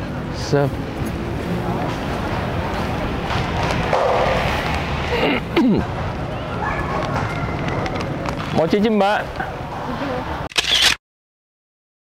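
Men and women chatter at a distance outdoors.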